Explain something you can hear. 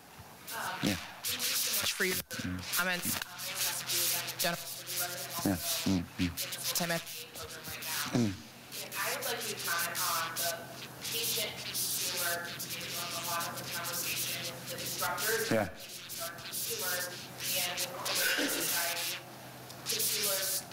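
A man lectures in an echoing hall, heard from a distance.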